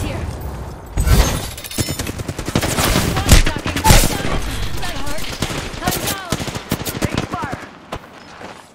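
Gunshots crack in quick bursts, with impacts ringing out.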